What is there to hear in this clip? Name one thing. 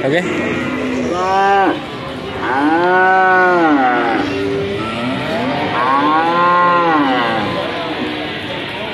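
Cattle moo loudly nearby.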